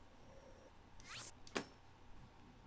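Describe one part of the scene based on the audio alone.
A game menu gives soft electronic chimes.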